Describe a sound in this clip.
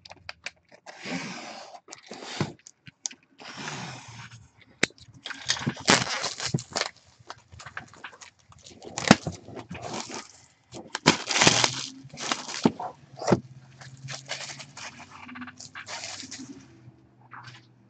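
Plastic wrap crinkles and rustles.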